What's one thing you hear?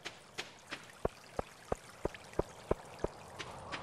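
Footsteps knock sharply on a bridge.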